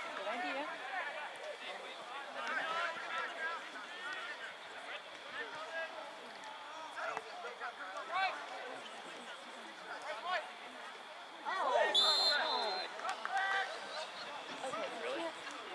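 Young men shout to each other outdoors across an open field.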